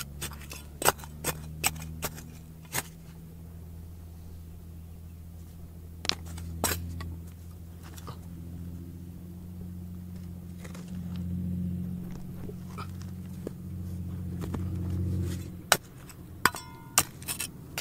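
A small trowel scrapes and digs into dry soil.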